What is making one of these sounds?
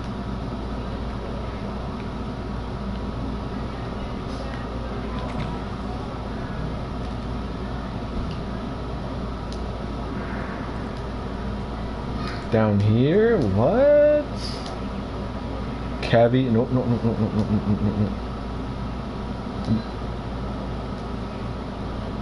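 A small drone motor whirs steadily as it rolls across the floor.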